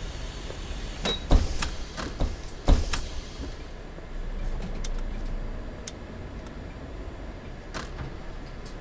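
Buttons click sharply a few times.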